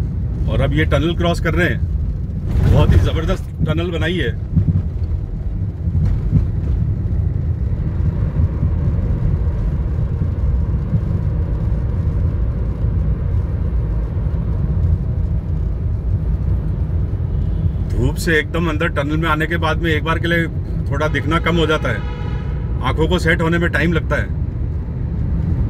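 A car engine hums with a low, steady road rumble from inside the moving car.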